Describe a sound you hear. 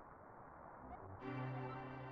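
Game music starts with a low melody.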